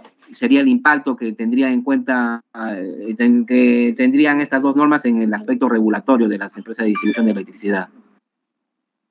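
A man speaks steadily over an online call.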